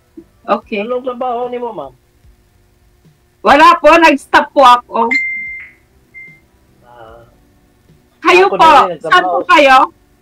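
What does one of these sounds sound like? A middle-aged woman laughs and talks over an online call.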